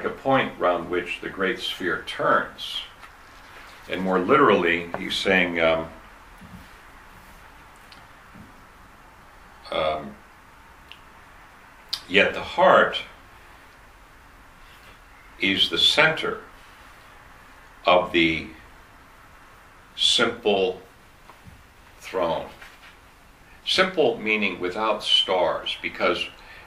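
An older man speaks calmly and thoughtfully close by, with pauses.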